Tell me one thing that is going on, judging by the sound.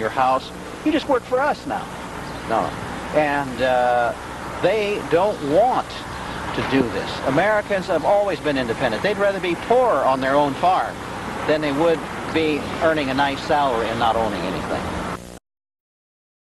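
A middle-aged man speaks with animation outdoors, close by.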